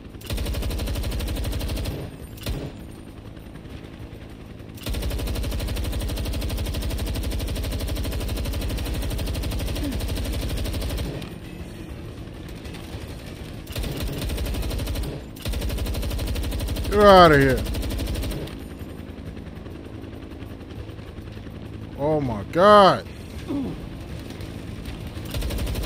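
A heavy machine gun fires in rapid bursts.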